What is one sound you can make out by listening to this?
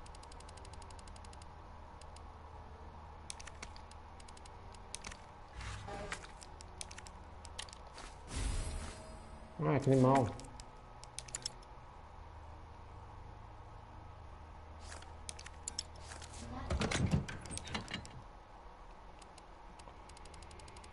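Short soft clicks tick as a menu is scrolled.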